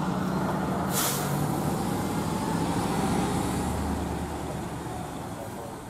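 A pickup truck engine hums as it rolls past.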